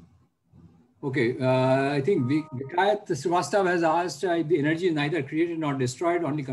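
A second elderly man answers with animation through an online call.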